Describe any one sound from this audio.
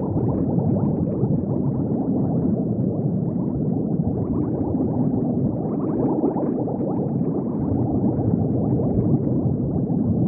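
Bubbles gurgle and fizz steadily underwater.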